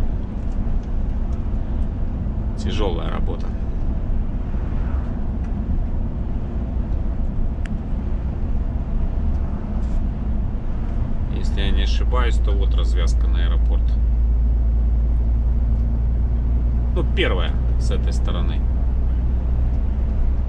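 A vehicle's engine rumbles steadily while driving.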